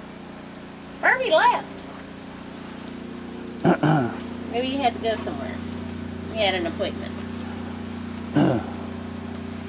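A woman talks nearby in short, lively bursts.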